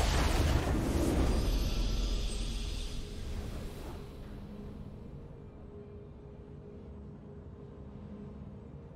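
A triumphant game fanfare bursts out with a whoosh and slowly fades.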